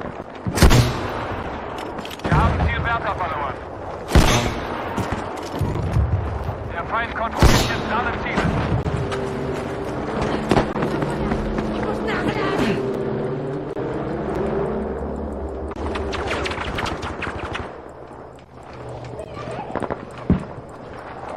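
Gunshots crack loudly in sharp bursts.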